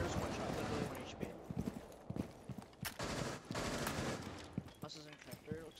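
Gunshots crack in quick bursts indoors.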